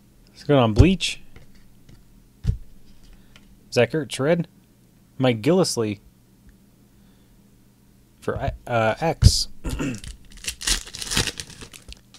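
Stiff cards slide and flick against each other.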